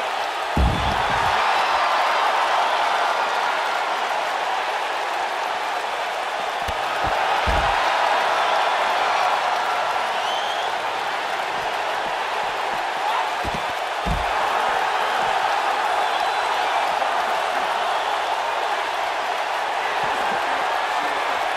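A large crowd cheers loudly and steadily.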